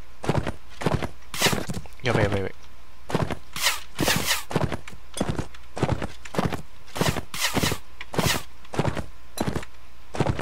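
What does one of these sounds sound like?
A horse's hooves thud steadily on grass at a trot.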